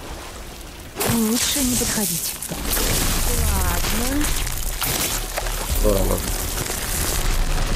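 Fire and energy blasts roar and crackle loudly.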